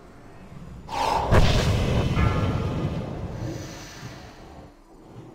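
A magic spell bursts with a loud whoosh that slowly fades.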